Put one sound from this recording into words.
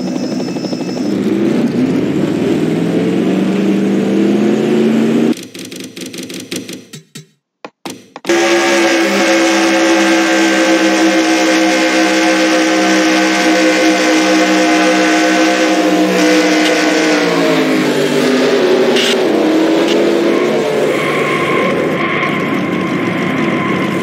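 A race car engine roars at high speed, rising in pitch as it speeds up.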